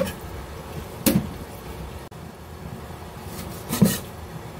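A cleaver chops through meat.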